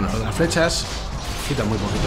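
Flaming blades whoosh through the air.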